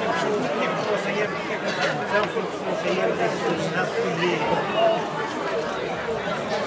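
A crowd of men and women chatter and call out all around, close by and outdoors.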